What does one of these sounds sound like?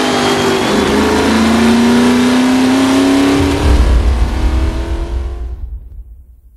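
An old car engine roars loudly and revs higher, then fades away.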